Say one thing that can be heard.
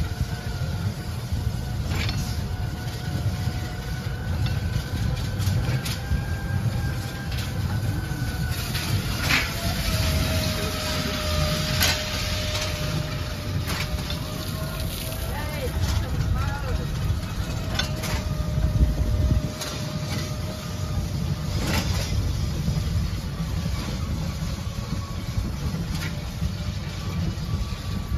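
A small vintage ride car's engine putters low as it drives along a guided track.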